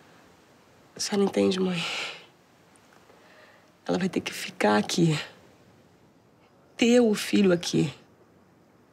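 A young woman speaks close by in an upset, pleading voice.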